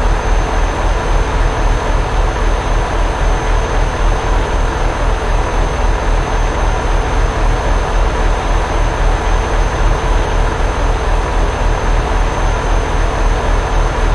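Tyres roll and hum on the road.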